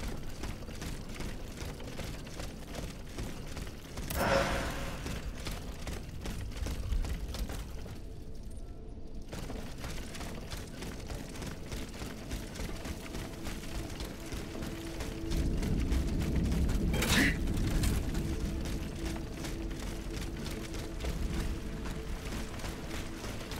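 Quick footsteps run over stone paving.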